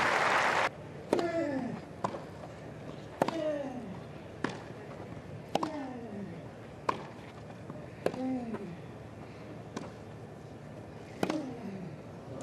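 Tennis rackets strike a ball back and forth in a rally on a grass court.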